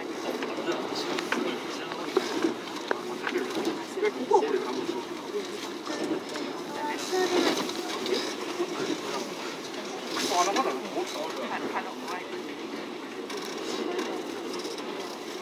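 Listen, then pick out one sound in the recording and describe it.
A train rumbles steadily along the tracks, heard from inside the cab.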